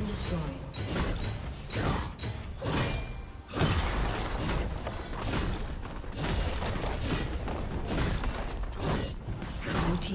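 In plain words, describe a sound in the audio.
Video game battle effects crash and blast in rapid bursts.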